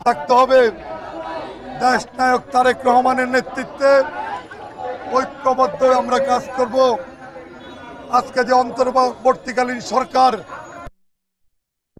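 A man shouts forcefully through a loudspeaker outdoors.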